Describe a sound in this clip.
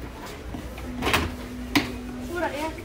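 Plastic boxes clatter and knock as they are handled.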